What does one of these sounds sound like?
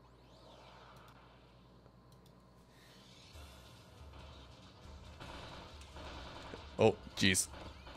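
Video game music plays steadily.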